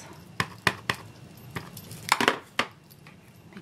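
A clear acrylic block taps and knocks against a tabletop.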